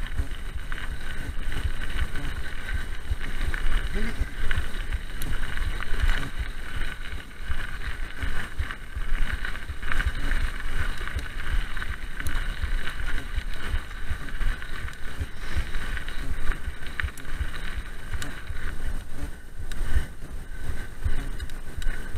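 A bicycle's chain and frame rattle over bumps.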